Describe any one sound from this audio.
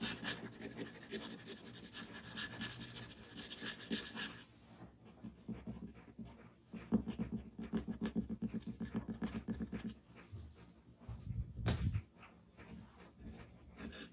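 A charcoal stick scratches and rubs softly on paper.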